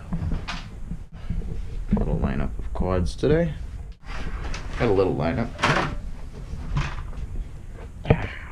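A man speaks with animation close to the microphone.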